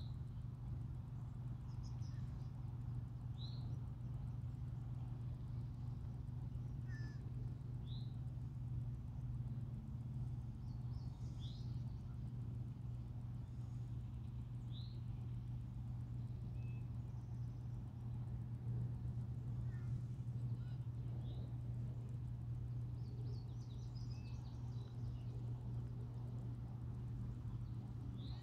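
Water rushes steadily from a dam in the distance.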